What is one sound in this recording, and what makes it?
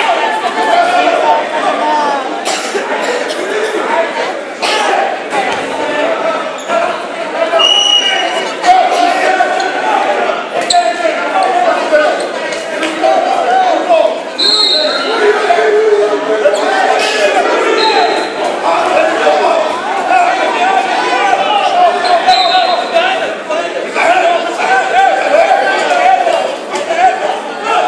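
Men shout instructions loudly from close by.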